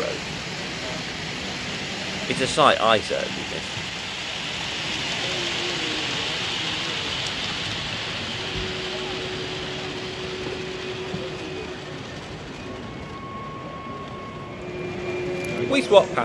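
A model train rumbles softly along its track.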